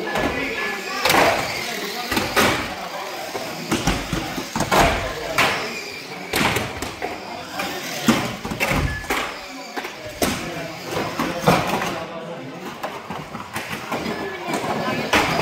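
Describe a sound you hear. Small electric motors whine as toy cars race around a track.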